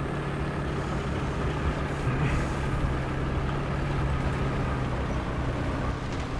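Tank tracks clatter and grind over sand.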